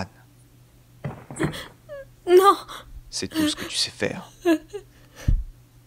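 A young woman speaks in a shaky, tearful voice.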